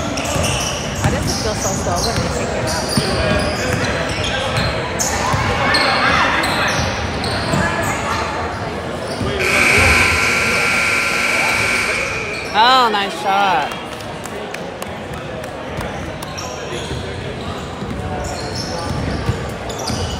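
Sneakers squeak on a hard floor in a large echoing hall.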